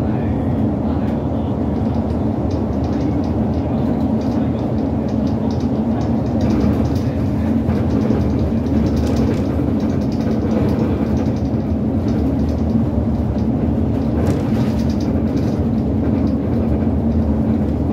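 A bus engine drones steadily at speed.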